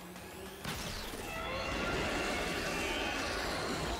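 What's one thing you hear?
A low rumbling explosion booms.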